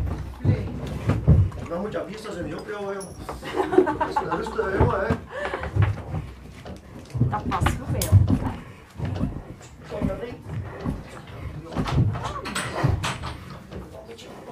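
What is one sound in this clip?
A man and a woman talk nearby in a small echoing space.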